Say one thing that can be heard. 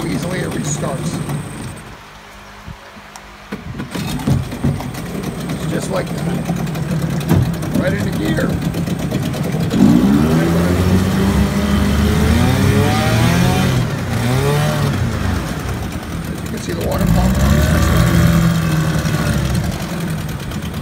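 An outboard motor engine runs with a steady, throbbing rumble.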